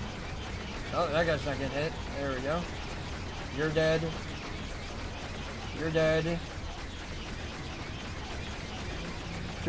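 Starfighter engines hum steadily.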